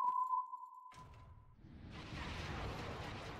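A magical blast whooshes and roars.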